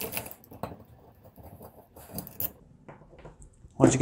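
A metal bolt clatters onto a hard surface.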